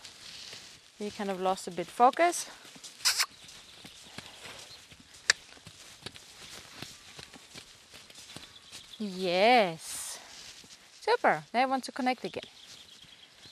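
A woman speaks calmly to a horse outdoors.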